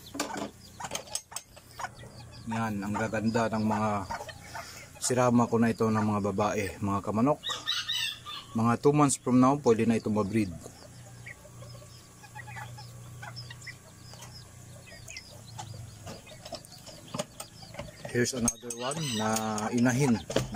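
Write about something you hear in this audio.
A metal latch rattles on a wooden door.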